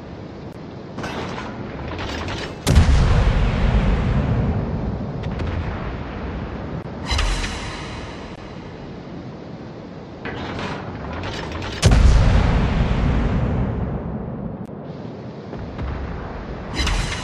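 Shells splash into water and explode around a ship.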